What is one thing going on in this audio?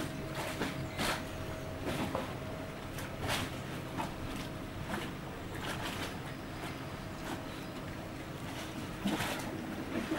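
Flags flutter and flap in a breeze.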